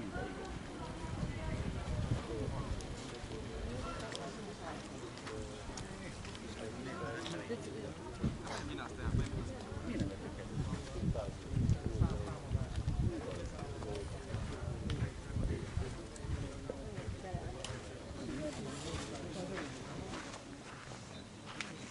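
Several young men call out to each other outdoors.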